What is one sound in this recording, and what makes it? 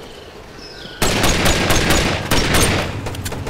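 Pistol shots fire in quick succession.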